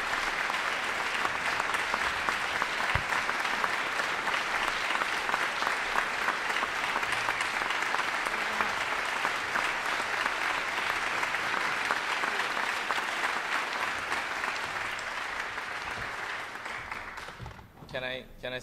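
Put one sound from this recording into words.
An audience applauds in a large hall, and the applause fades away.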